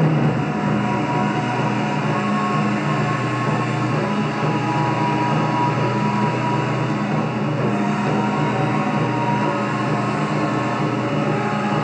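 A young woman sings into a microphone, heard through a loudspeaker.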